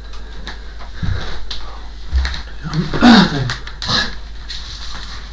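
A man steps down heavily from a stool.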